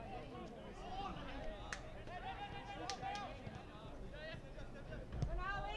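A crowd of spectators cheers and chatters outdoors at a distance.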